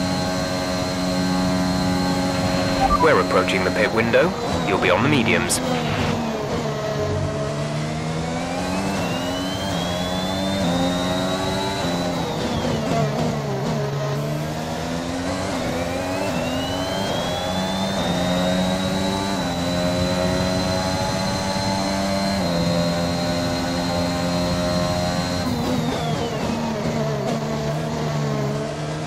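A racing car engine roars, rising and falling in pitch.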